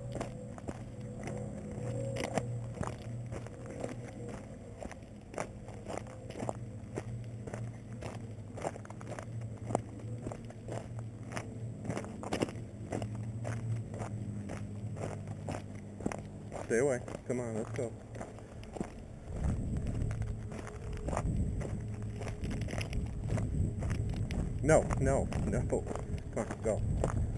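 Footsteps crunch steadily on loose stones.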